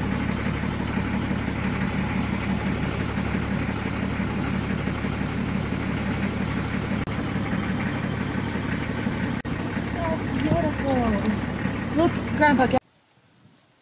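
A car engine rumbles steadily close by, then cuts off abruptly.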